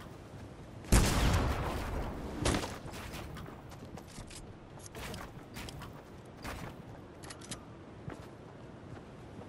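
Building pieces slam into place with sharp thuds.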